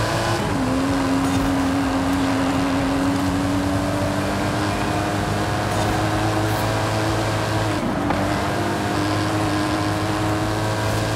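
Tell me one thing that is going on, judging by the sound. A sports car engine roars at high speed, shifting gears as it climbs in pitch.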